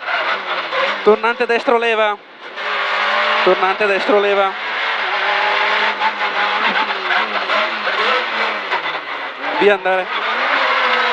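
A man reads out rapidly through an intercom.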